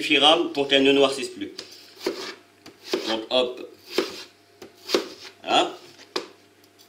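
A knife slices through a raw potato.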